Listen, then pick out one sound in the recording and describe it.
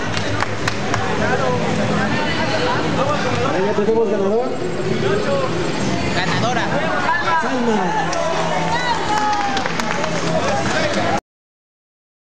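A crowd of young people chatters and laughs close by.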